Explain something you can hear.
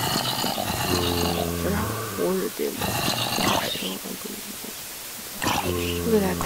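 A monster groans low and hoarsely, again and again.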